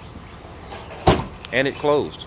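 A car's rear hatch slams shut.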